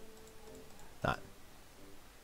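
A heavy metal lever clunks into place.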